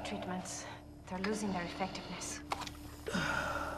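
A woman speaks quietly and tensely.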